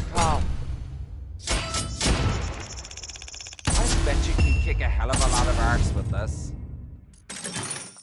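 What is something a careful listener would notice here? Cards flip over with sharp whooshes.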